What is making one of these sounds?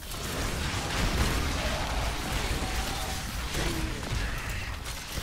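Game spells crackle and burst with magical whooshes.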